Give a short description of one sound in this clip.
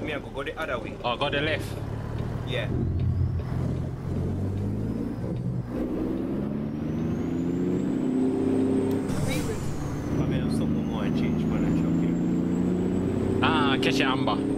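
A truck engine rumbles steadily and rises in pitch as it speeds up.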